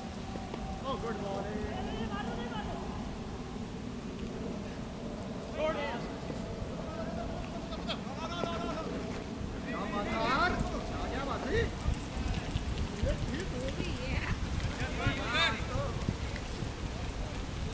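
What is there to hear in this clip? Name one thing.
Men call out and talk loudly at a distance across an open field.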